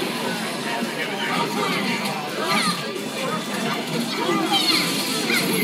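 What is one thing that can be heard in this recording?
A fighting video game plays through a television's speakers, with hits, effects and character shouts.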